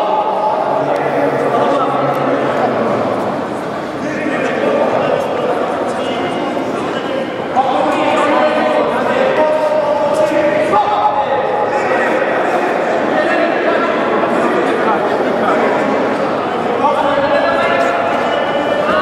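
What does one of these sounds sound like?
A crowd talks and cheers loudly in an echoing hall.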